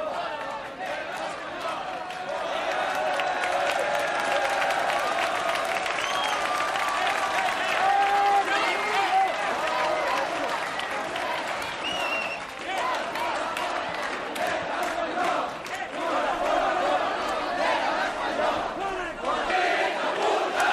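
A large crowd of young men and women shouts and chants loudly outdoors.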